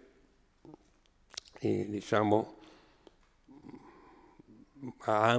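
An elderly man speaks slowly and haltingly into a microphone.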